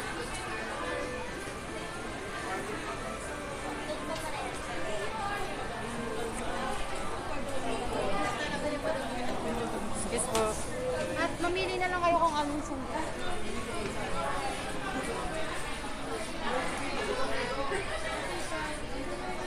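A crowd of people chatters in a busy indoor room.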